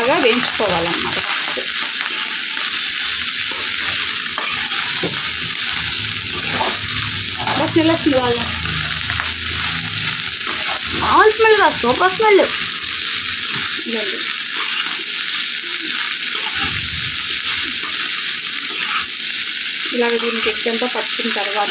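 A metal spatula scrapes and clatters against a pan.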